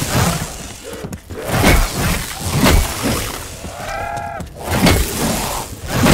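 Electricity crackles and zaps in short bursts.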